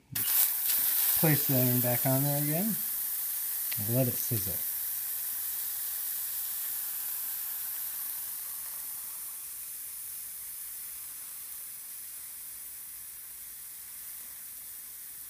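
A hot iron hisses and sizzles steadily, slowly fading.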